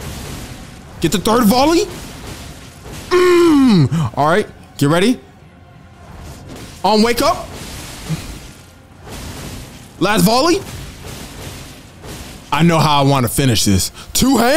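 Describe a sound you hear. A young man exclaims with animation into a close microphone.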